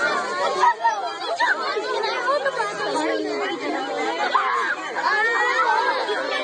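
Young children shout and squeal excitedly.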